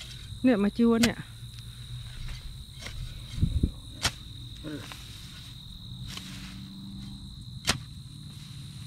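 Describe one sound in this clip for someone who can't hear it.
A hoe chops into dry soil and grass with dull thuds.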